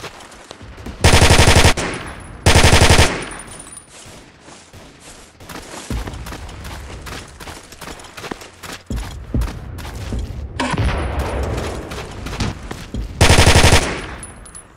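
Rapid bursts of automatic rifle fire ring out loudly.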